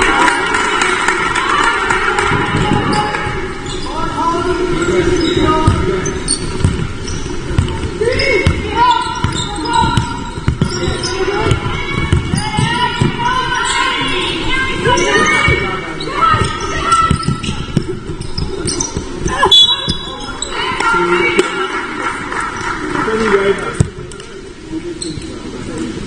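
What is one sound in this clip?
Basketball players' shoes squeak on a hard floor in a large echoing hall.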